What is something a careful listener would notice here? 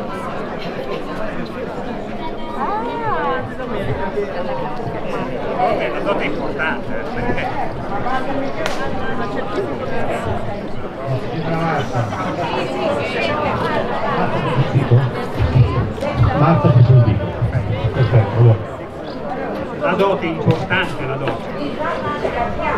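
A crowd of men and women chatter outdoors.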